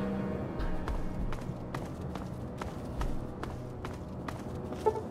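Footsteps tread on a rough road at a steady walking pace.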